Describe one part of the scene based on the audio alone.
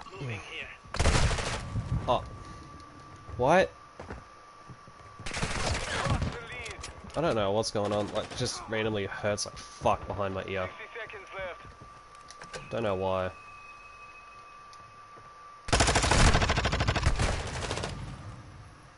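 Rapid gunfire rattles in short, loud bursts.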